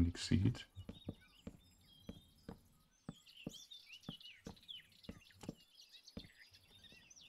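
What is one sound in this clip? Wooden blocks are set down with short, soft knocks.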